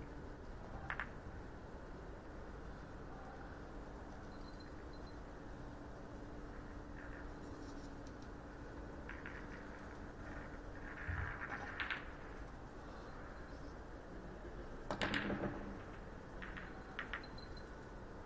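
Snooker balls clack together on the table.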